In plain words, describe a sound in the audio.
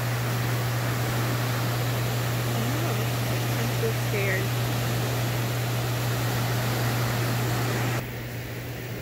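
Turbulent water churns and rushes loudly.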